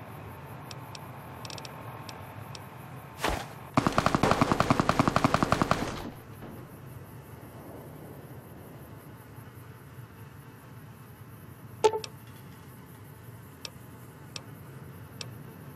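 Soft electronic clicks tick from a device interface.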